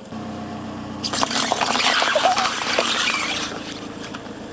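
Paper cups crackle and crunch as a car tyre rolls over them.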